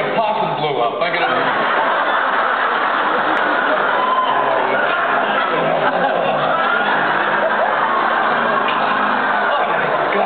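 A large crowd chatters loudly in an echoing hall.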